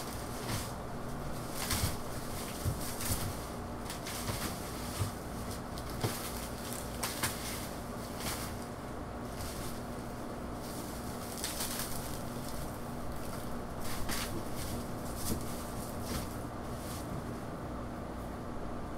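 Dry leaves rustle and crackle as a man stuffs them into a plastic bin.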